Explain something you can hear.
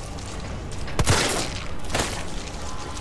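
A handgun fires twice with loud bangs.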